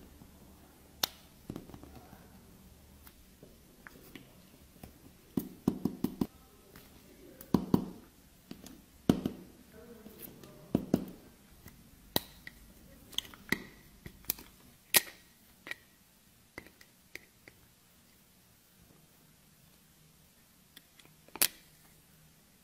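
Metal tweezers tap and click against a hard plastic tray.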